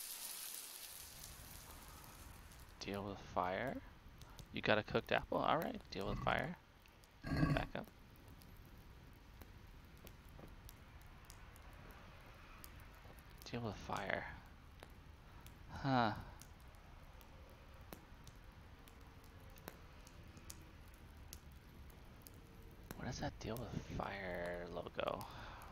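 A fire crackles softly.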